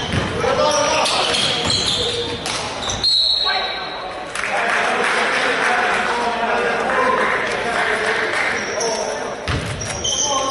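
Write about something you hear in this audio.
Sneakers squeak sharply on a hardwood floor.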